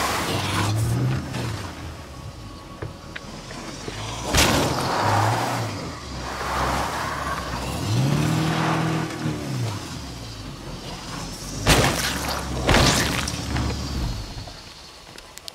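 An engine revs and roars as a car drives over rough ground.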